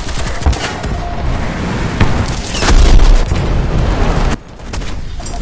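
An explosion booms and bursts into flames.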